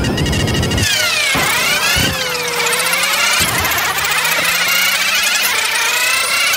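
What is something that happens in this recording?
A race car engine revs high, climbing and dropping in pitch as it shifts gears.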